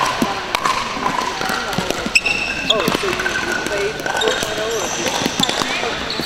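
Paddles knock a plastic ball back and forth with sharp pops.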